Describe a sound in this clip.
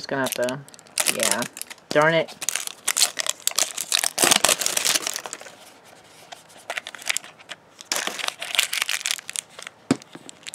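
Plastic wrapping crinkles and rustles close by.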